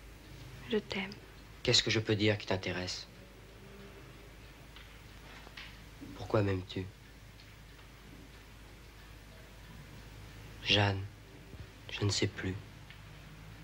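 A young man speaks quietly and close by, in short phrases with pauses.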